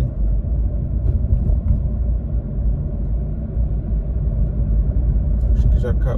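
A bus rumbles past close by.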